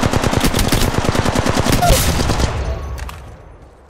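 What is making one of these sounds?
Rapid gunfire rattles loudly, then stops.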